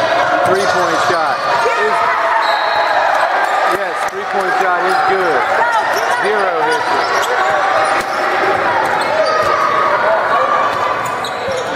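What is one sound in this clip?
Sneakers squeak sharply on a hard court in a large echoing gym.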